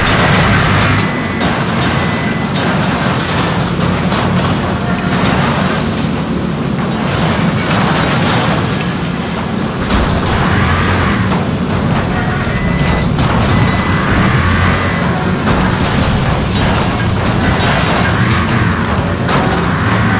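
Metal bodies crash and crunch together.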